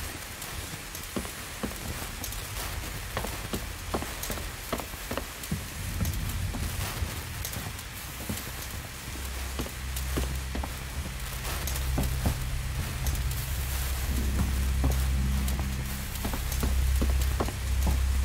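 A flare fizzes and hisses steadily.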